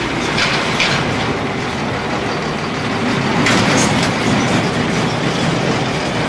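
A truck engine rumbles as the truck drives past.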